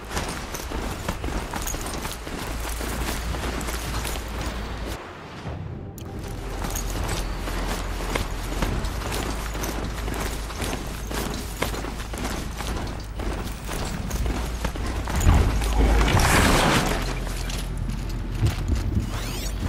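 Heavy metallic footsteps thud quickly as a mechanical beast gallops over snow.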